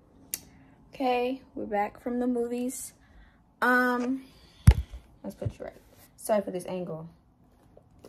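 A young woman talks with animation close to a phone microphone.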